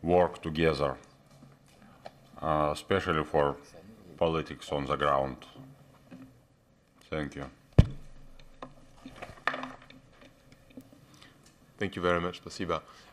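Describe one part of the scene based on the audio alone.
A middle-aged man speaks calmly into a microphone, pausing often.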